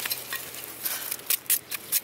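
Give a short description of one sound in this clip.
A knife scrapes against wood.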